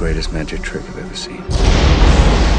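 A man speaks in a low, calm voice.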